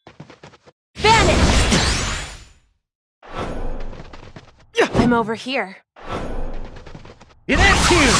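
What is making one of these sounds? Blades swish and strike in quick bursts.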